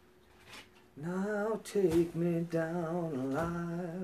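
A man sings close by in a steady, wavering voice.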